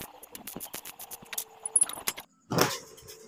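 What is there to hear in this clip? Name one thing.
An electric welder crackles and sizzles.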